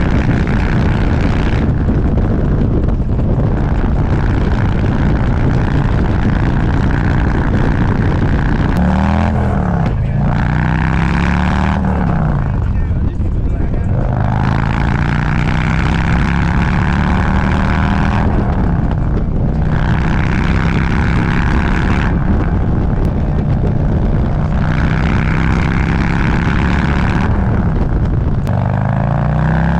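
A motorcycle engine rumbles loudly and revs up and down as it shifts gears.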